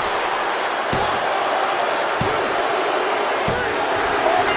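A hand slaps a wrestling mat several times in a count.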